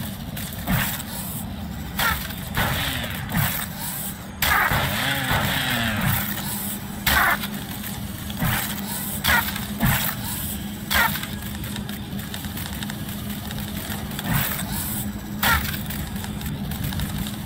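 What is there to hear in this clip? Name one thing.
A small robot's metal legs clatter and whir as it scuttles about.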